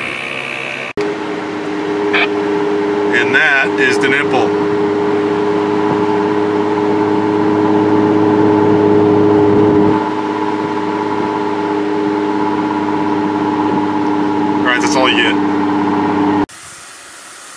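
A car engine hums steadily from inside a moving car.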